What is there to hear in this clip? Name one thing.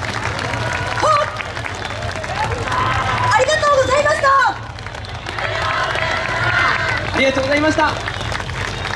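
A group of young dancers shout and chant together outdoors.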